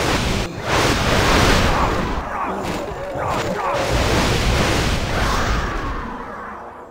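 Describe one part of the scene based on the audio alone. Magic blasts crackle and boom loudly.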